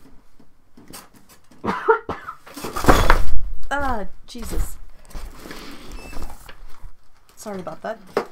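A board scrapes and bumps across a tabletop.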